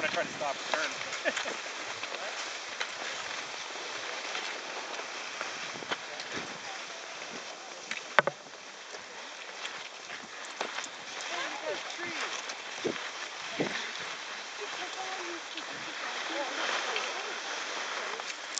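Ski poles click and crunch into packed snow.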